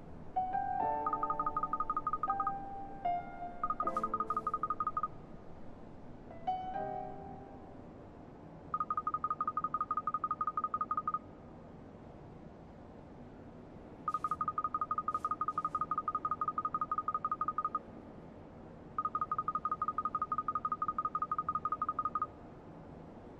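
Rapid electronic blips chatter in short steady bursts.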